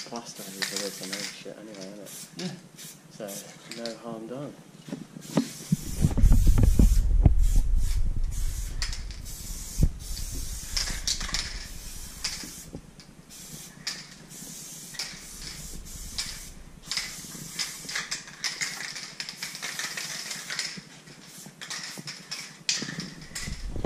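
An aerosol spray can hisses in short bursts.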